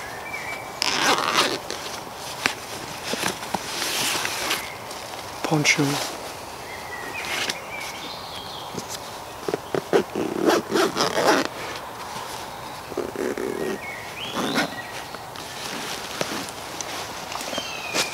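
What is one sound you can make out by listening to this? Fabric rustles and zips rasp as a backpack is handled.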